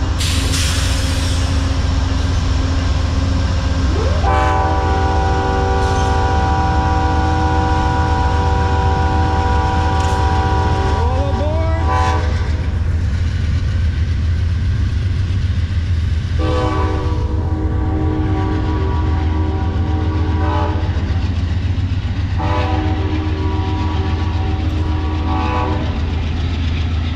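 A passenger train rumbles steadily past close by.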